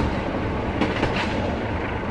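A train carriage rumbles and rattles steadily along the tracks.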